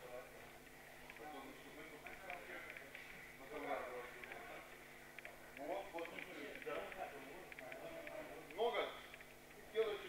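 Young people talk nearby.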